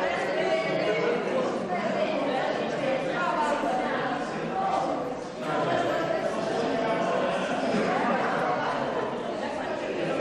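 Several adults chat and laugh together.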